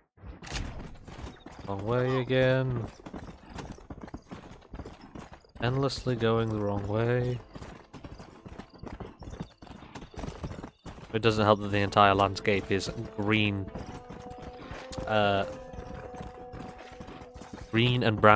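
A horse gallops with quick, steady hoofbeats on dry ground.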